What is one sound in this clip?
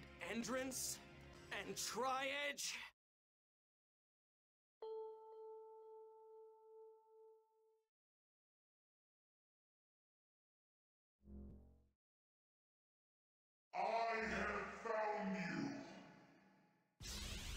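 A man speaks slowly in a deep, dramatic voice.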